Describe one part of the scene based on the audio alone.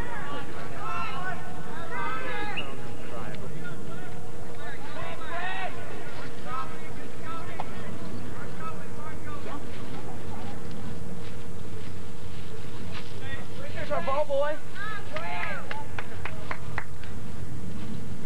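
Young men call out to each other across an open field outdoors.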